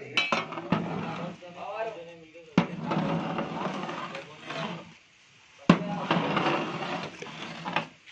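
A metal ladle stirs and scrapes inside a cooking pot.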